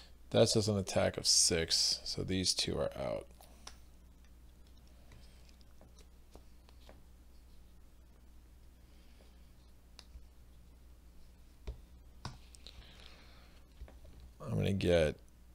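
Small game pieces tap softly on a board.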